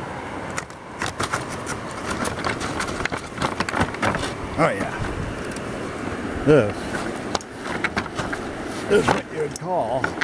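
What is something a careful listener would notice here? A plastic chair knocks and scrapes as it is moved.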